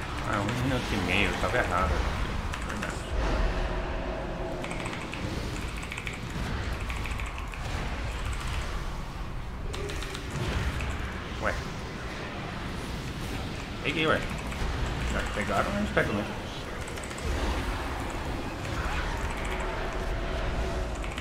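A young man talks steadily into a close microphone.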